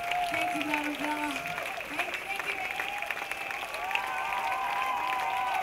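A large crowd cheers in a big echoing hall.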